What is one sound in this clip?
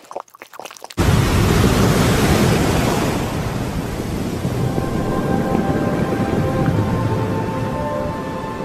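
A young man sings along to music through a microphone.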